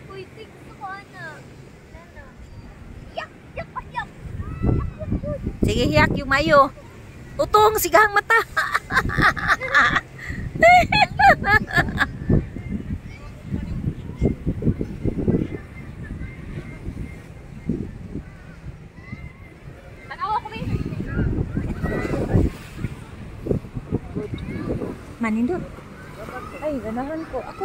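Young women talk and laugh close by, outdoors.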